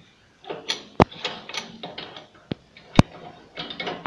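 Metal parts click against each other as they are fitted together by hand.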